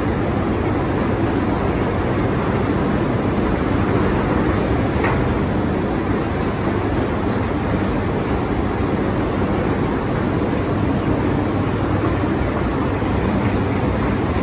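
A tractor rolls forward slowly over a metal platform.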